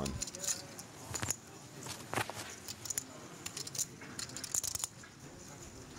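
Poker chips click together repeatedly.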